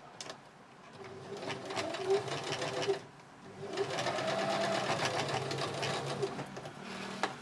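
A sewing machine whirs as it stitches fabric.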